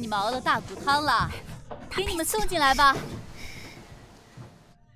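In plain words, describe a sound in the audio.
A young woman answers brightly.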